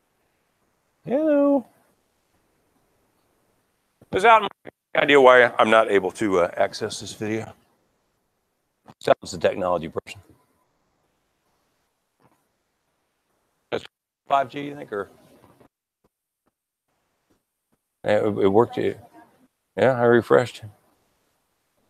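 A man speaks to an audience through a microphone in a large room, in bursts with pauses.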